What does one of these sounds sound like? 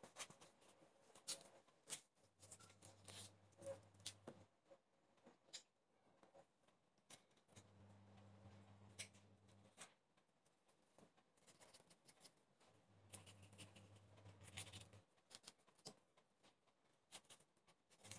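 A knife cuts through a pineapple with crunchy, scraping strokes.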